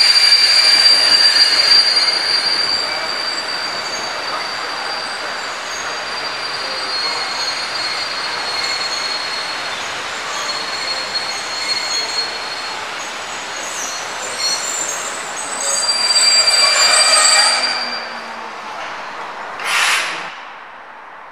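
A train rolls slowly past on the rails.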